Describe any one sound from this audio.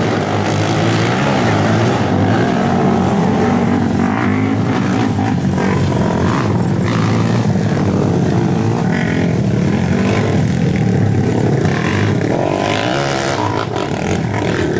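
Quad bike engines rev up and down through turns.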